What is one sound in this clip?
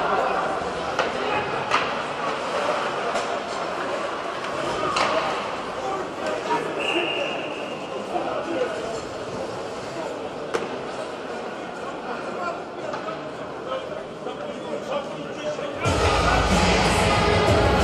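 Sticks clack against the puck on the ice.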